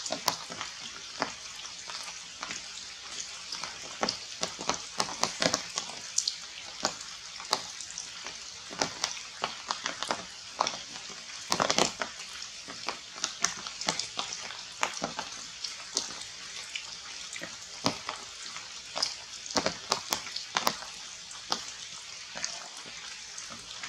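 Branches and leaves rustle as monkeys climb.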